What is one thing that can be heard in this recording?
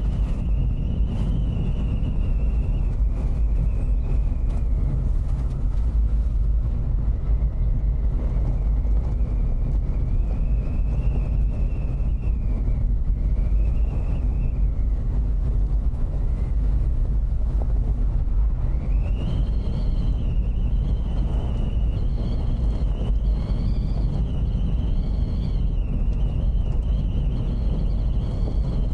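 Tyres rumble steadily over a gravel road.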